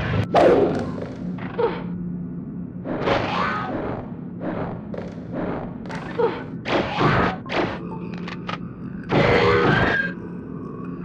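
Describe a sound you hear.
A blade slashes and strikes a creature with heavy thuds.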